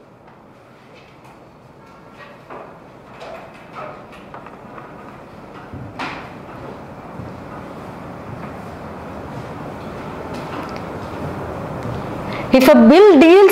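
A young woman speaks calmly, as if lecturing.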